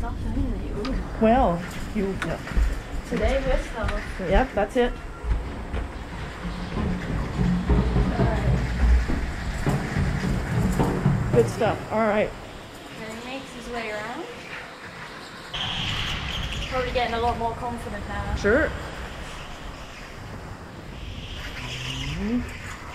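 A young man talks with excitement close by.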